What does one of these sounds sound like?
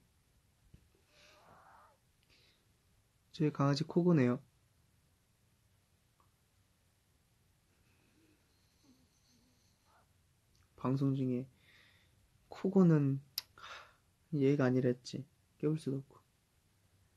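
A young man speaks softly and close by, in short bursts.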